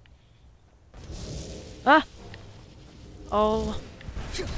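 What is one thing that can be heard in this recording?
A magical energy crackles and hums loudly.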